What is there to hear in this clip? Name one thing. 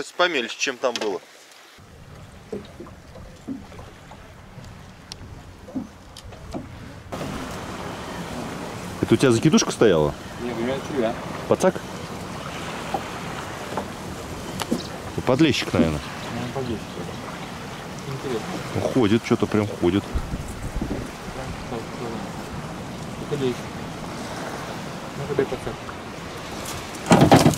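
Wind blows outdoors over open water.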